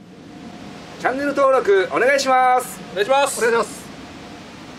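Young men call out together loudly in unison.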